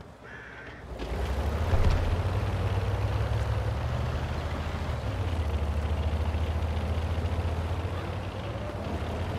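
A tank engine rumbles as the tank drives.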